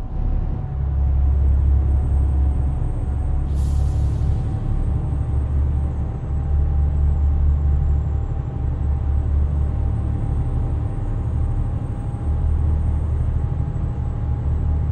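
A truck's diesel engine hums low and steady from inside the cab.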